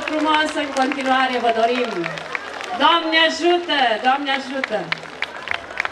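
A woman sings a folk song through loudspeakers outdoors.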